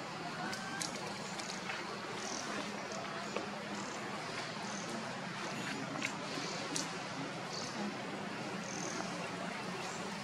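A small monkey chews and nibbles on crisp leaves close by.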